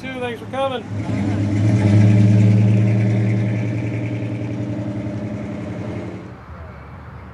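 A car engine revs loudly and roars as the car pulls away.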